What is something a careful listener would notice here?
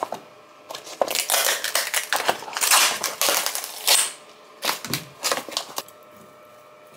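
A plastic packet crinkles and rustles up close.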